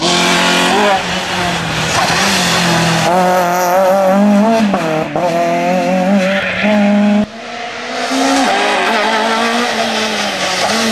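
A rally car engine roars and revs hard as cars speed past close by.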